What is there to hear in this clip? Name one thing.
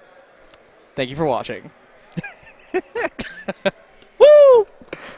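A young man laughs into a microphone.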